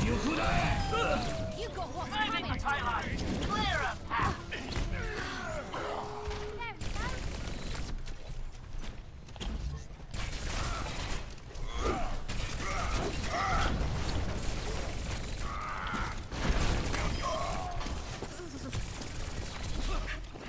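Energy pistols fire in rapid bursts.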